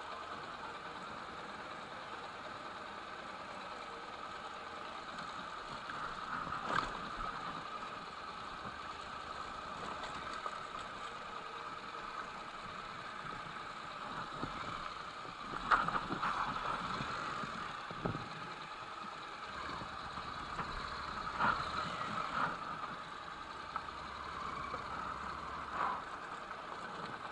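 A motorcycle engine idles and putters steadily.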